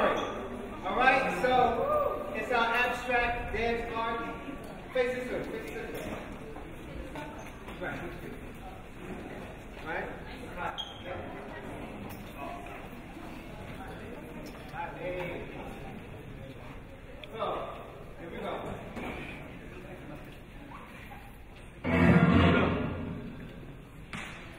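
A man calls out loudly to a group in a large echoing hall.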